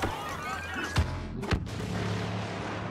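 A grenade explodes with a heavy blast.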